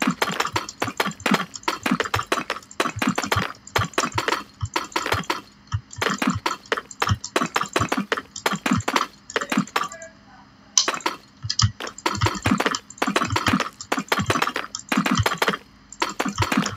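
Stone blocks thud softly as they are placed in a game.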